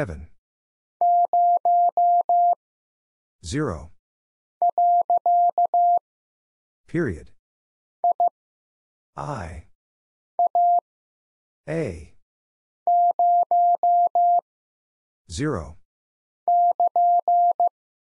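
A telegraph key sends short and long beeps of Morse code.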